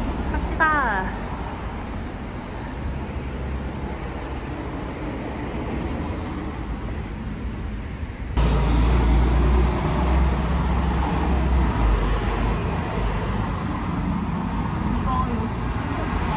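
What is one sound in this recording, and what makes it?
Traffic rumbles past on a nearby street.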